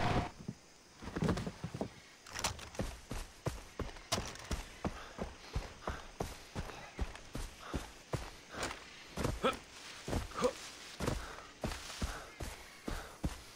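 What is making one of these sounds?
Footsteps crunch on gravel and grass at a steady walking pace.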